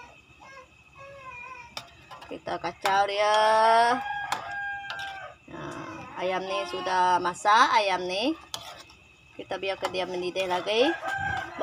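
A metal ladle scrapes and clinks against a metal pan.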